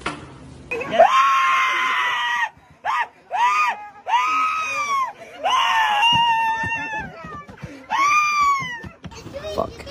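A man shouts with excitement close by.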